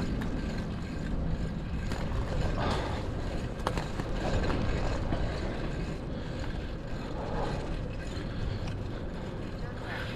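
Tyres roll over asphalt.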